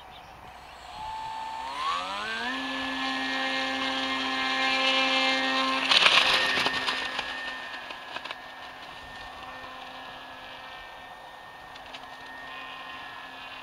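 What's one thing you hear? A small electric propeller motor whines, rises in pitch, then drones steadily and fades as it flies away.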